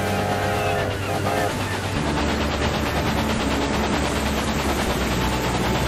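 A steam train rumbles steadily along the rails.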